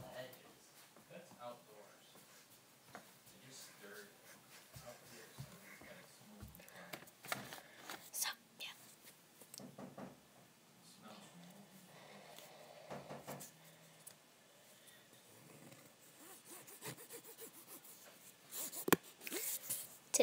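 A young girl speaks quietly and close by.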